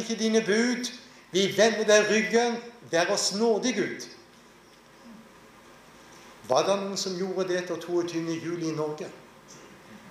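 A middle-aged man speaks with animation into a microphone in a large echoing hall.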